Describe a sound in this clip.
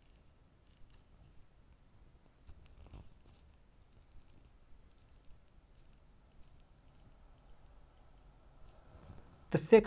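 A watch crown clicks softly as it is turned.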